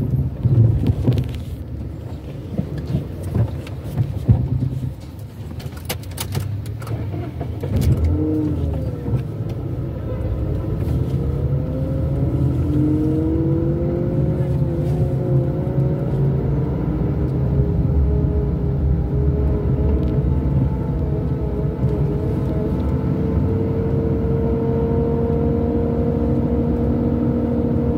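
A car engine hums steadily while driving along a street.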